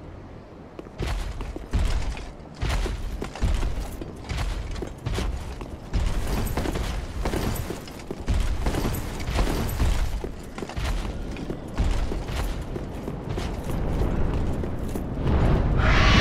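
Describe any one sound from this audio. Armoured footsteps clank quickly on stone.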